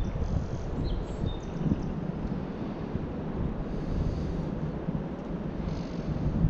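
Small waves lap against a grassy bank.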